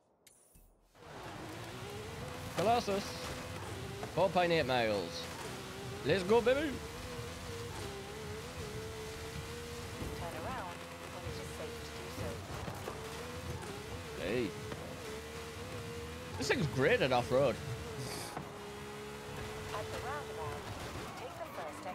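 A sports car engine roars and revs up and down as the car speeds along.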